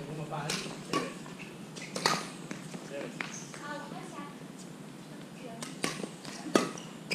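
Badminton rackets smack a shuttlecock in a large echoing hall.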